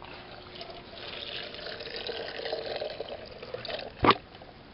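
Liquid splashes as it pours into a plastic container.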